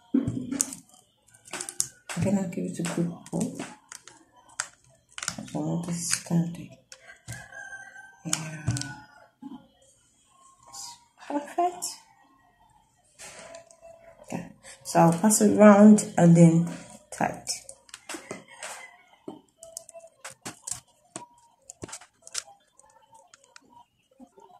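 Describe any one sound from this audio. Plastic beads click and clatter against each other as they are handled.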